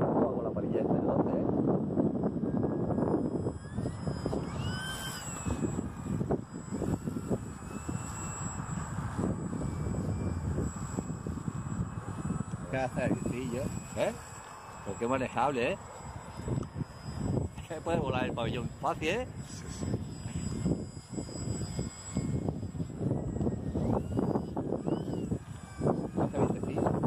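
A small model plane's electric motor whines steadily as it flies overhead.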